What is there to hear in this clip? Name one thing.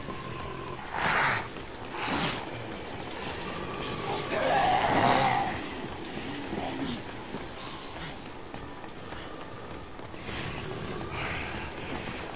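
Zombies groan and moan nearby.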